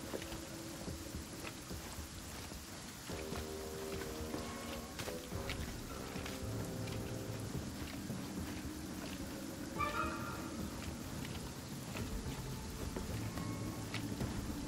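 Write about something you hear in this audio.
A climber's hands and boots rustle and scrape on thick, dry vines.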